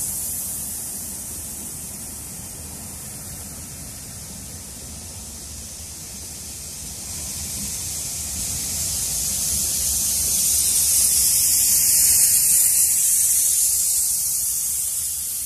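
Train carriages rumble and clatter past along the rails.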